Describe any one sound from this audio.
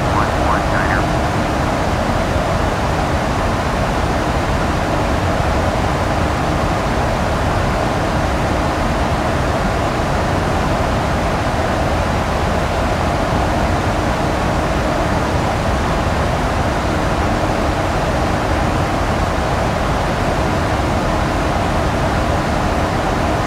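A jet engine roars steadily, heard from inside a cockpit.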